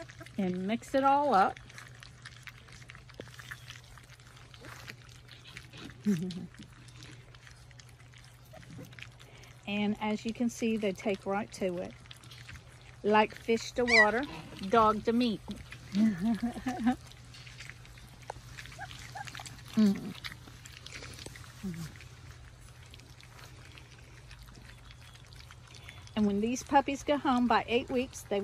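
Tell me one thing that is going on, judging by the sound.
Puppies chew and lap wet food noisily.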